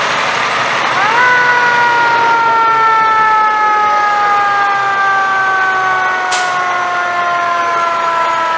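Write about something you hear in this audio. An air horn blares loudly and long, its pitch slowly sinking as the truck passes.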